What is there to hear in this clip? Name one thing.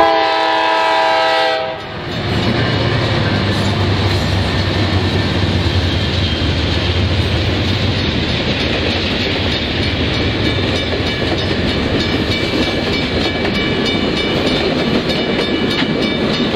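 A crossing bell rings rapidly.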